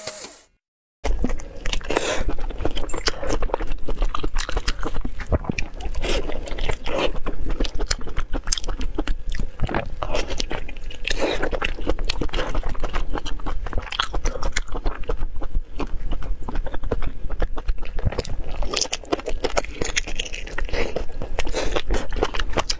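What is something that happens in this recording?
A woman chews meat close to a microphone, with wet smacking sounds.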